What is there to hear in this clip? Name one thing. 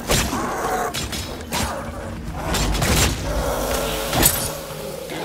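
A man talks into a headset microphone with animation.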